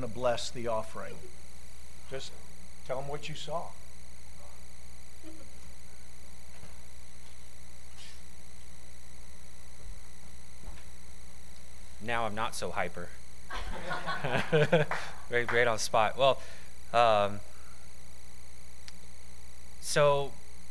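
A man speaks calmly through a microphone in a large room, with pauses.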